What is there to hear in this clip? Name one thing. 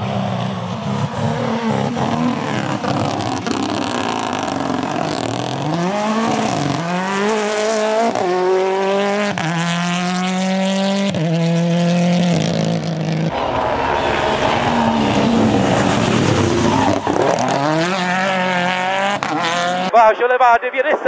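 A rally car engine roars past at high revs, shifting gears.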